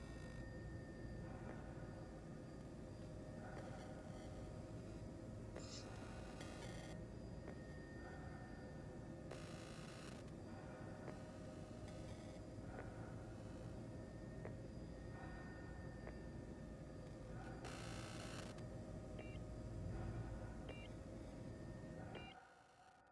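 A spacecraft engine hums with a steady low rumble.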